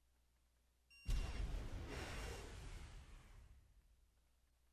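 A loud explosion booms and rumbles slowly away.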